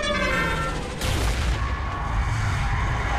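A huge explosion roars and rumbles.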